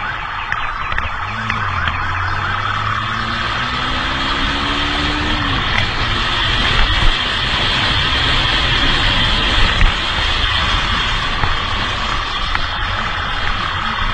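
A motorcycle engine hums and revs while riding.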